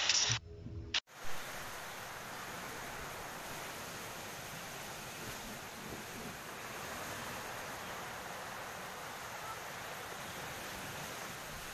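Surf breaks and churns against rocks.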